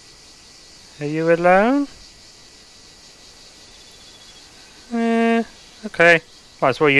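An antelope calls out nearby.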